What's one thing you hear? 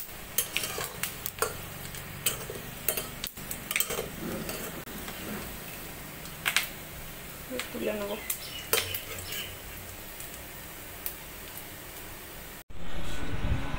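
Hot oil sizzles softly in a wok.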